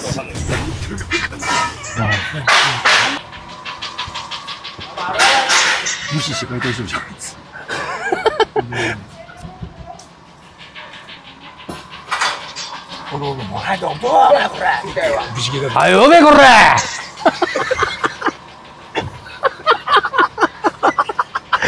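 A middle-aged man laughs loudly close by.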